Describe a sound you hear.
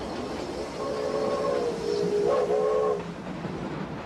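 A train whistle blows.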